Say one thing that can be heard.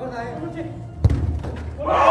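A ball is kicked hard with a thump.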